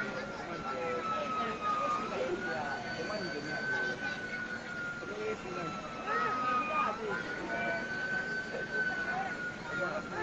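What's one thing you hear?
A crowd of men and women shout and talk excitedly nearby.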